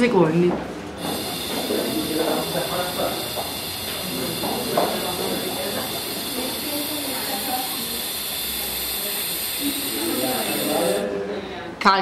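A woman blows steadily through a tube.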